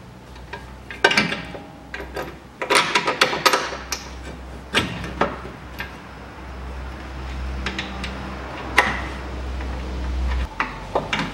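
A metal tool clinks and knocks against car parts.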